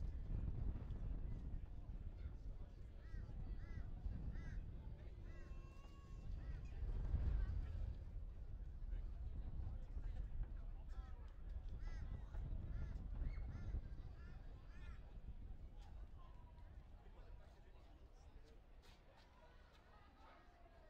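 Players call out faintly across an open field.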